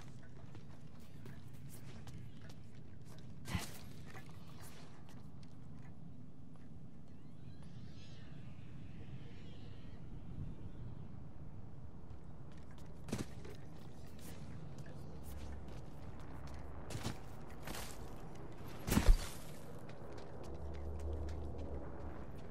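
Footsteps scuff and crunch over sand and rock.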